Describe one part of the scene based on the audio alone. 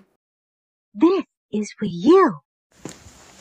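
Another woman speaks brightly.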